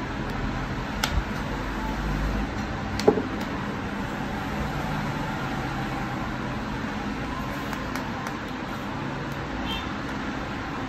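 Fingers click and tap against the plastic edge of a phone.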